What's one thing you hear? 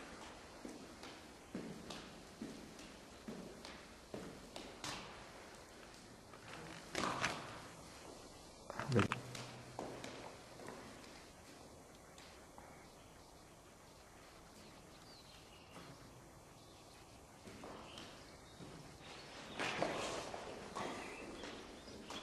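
Footsteps scuff on a gritty concrete floor.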